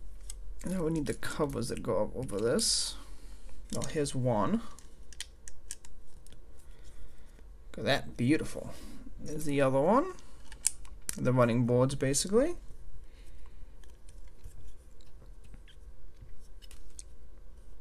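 Plastic toy bricks click as they are pressed together and handled.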